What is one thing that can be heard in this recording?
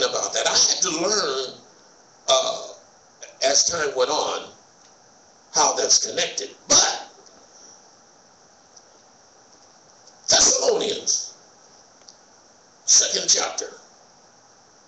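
A man speaks calmly in short phrases into a microphone, in an echoing hall.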